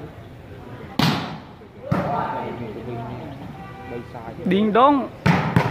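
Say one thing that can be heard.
A ball is struck with a thud.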